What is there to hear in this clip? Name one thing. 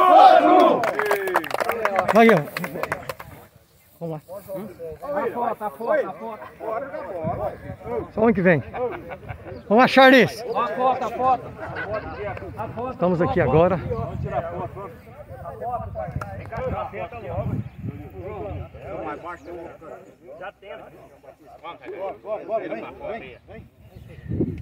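Several men talk and call out to each other outdoors.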